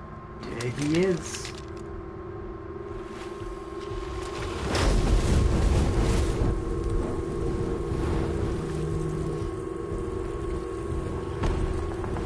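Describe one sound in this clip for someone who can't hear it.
A man crawls splashing through shallow water.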